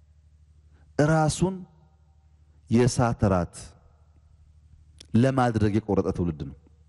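A man speaks calmly in short phrases into a microphone, with pauses between them.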